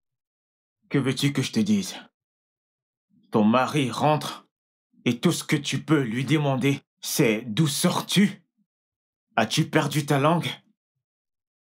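A young man speaks close by, in a pained, complaining voice.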